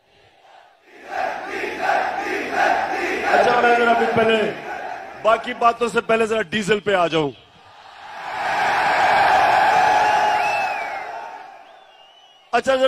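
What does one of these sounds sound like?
A large crowd chants and cheers loudly.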